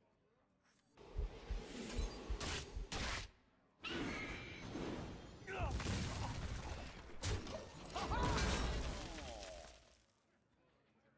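Card game sound effects whoosh, clash and burst in quick succession.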